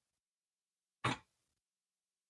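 Small metal parts click softly as they are handled.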